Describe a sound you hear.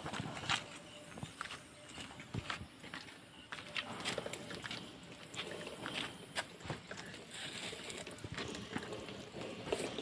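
Small plastic wheels roll and crunch over loose gravel.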